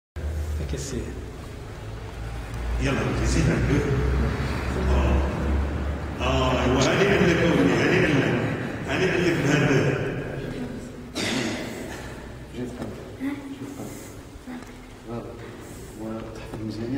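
A man talks in an echoing hall.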